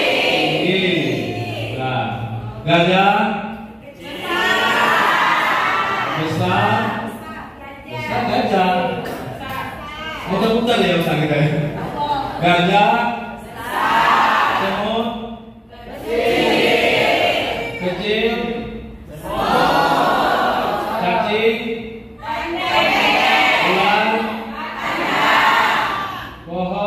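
A crowd of young people sings and chants together.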